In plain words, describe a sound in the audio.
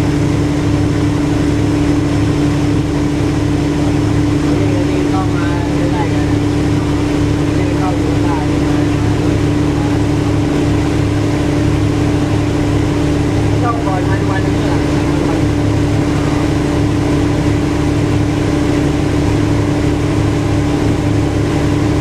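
A boat engine drones steadily nearby.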